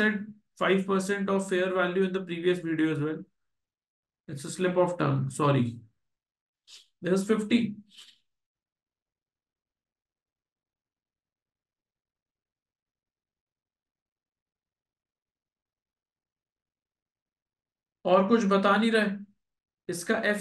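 A man speaks calmly into a microphone, explaining.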